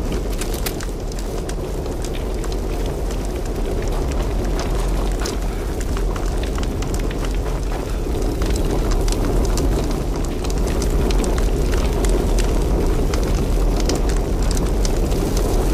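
A large fire roars and crackles.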